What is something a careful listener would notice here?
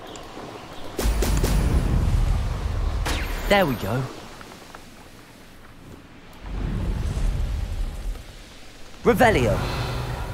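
Wind rushes past during flight.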